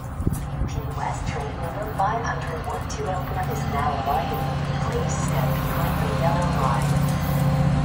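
A few people talk nearby outdoors.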